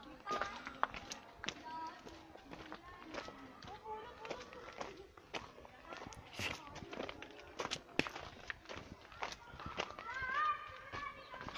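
Footsteps crunch on loose gravel and stones.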